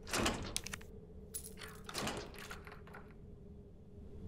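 A metal door latch clicks and clanks.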